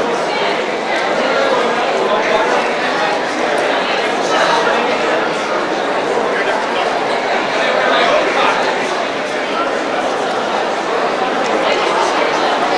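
A large crowd of men and women chatters all at once in a big echoing hall.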